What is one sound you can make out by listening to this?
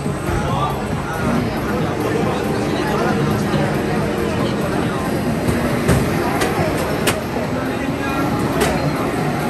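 Music plays loudly from arcade machines.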